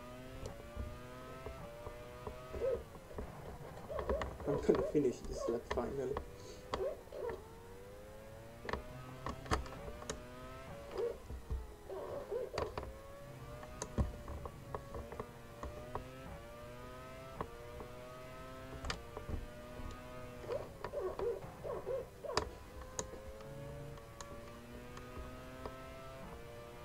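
A racing car engine whines, rising in pitch as it speeds up and dropping as it shifts gears.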